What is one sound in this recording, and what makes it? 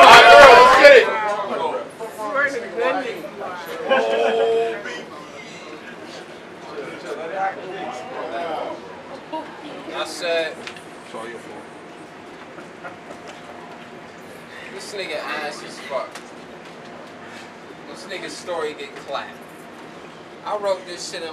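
Men talk to each other in a group nearby.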